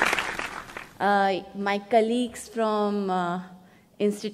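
A woman speaks calmly into a microphone over loudspeakers in a large hall.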